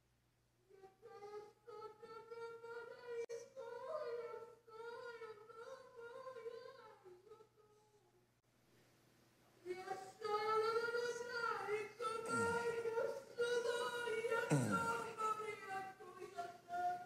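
A middle-aged man speaks fervently into a microphone, in drawn-out chanting phrases.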